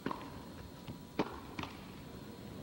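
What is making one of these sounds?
A tennis ball is struck with rackets in a rally.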